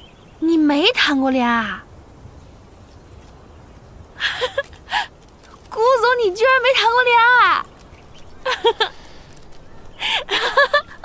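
A young woman speaks with animation and laughs, close by.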